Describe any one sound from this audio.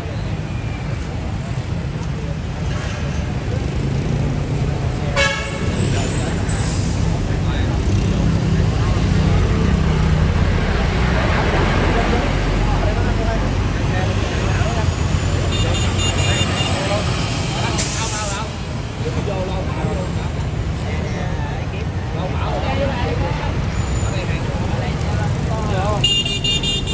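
Traffic rumbles steadily outdoors on a busy street.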